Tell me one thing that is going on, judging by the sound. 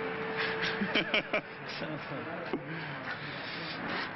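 A man laughs.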